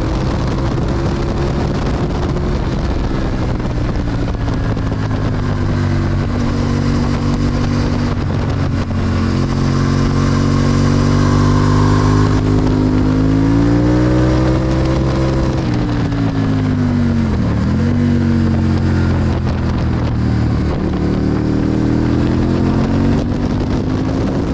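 A motorcycle engine roars loudly at high revs, its pitch rising and falling through the gears.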